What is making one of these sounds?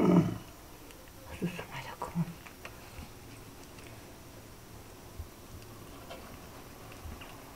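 A knife slices through raw meat with soft, wet cutting sounds.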